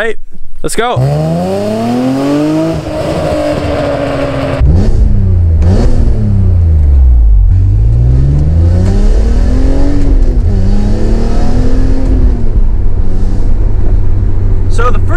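A car engine revs up and down as the car accelerates and shifts gears.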